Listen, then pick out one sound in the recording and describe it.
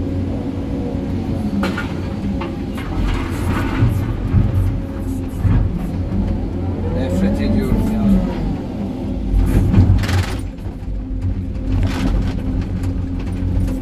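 A diesel engine rumbles steadily from inside a cab.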